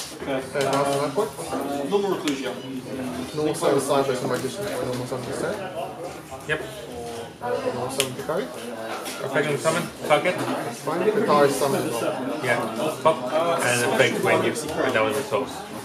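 Cards tap and slide on a cloth mat.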